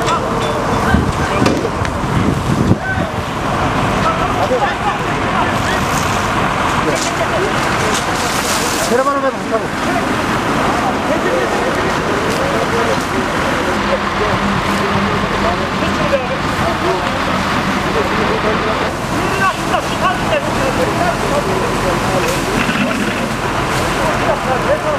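A large fire roars and crackles close by.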